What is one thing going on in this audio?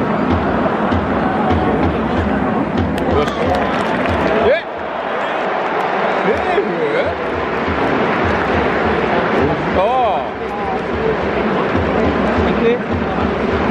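A large crowd murmurs and cheers in a big echoing space.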